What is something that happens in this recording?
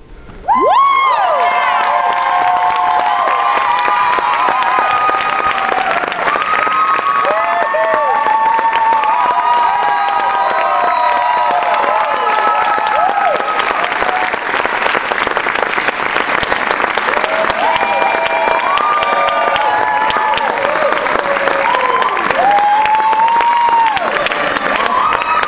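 A crowd cheers and screams loudly in a large hall.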